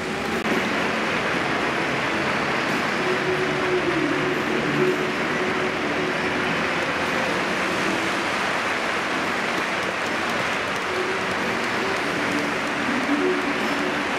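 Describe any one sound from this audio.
A large stadium crowd chants and sings loudly, echoing outdoors.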